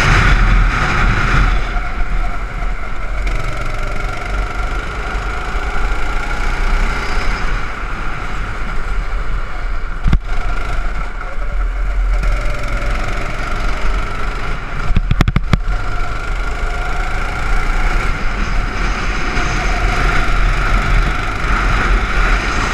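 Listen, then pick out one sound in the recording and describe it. Wind rushes past at speed.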